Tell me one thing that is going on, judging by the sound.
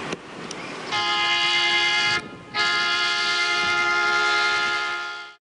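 An electric train hums with a steady high whine as it pulls in.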